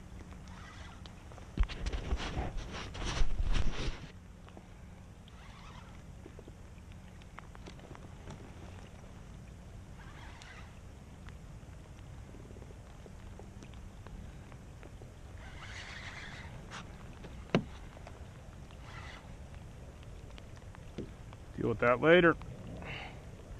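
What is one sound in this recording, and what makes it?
Water laps gently against the side of a small boat.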